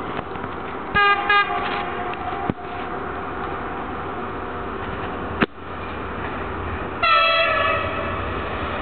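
A train horn blows in two short blasts, then again in a longer blast.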